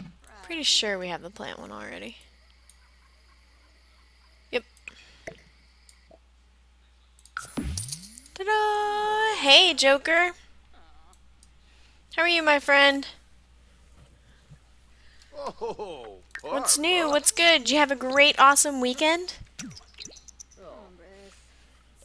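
A young woman talks with animation close to a microphone, in short bursts.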